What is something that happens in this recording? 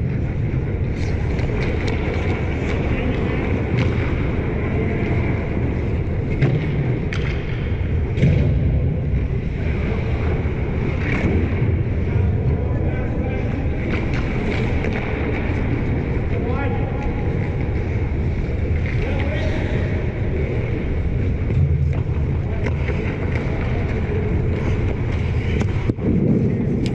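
Hockey sticks clack against pucks and the ice.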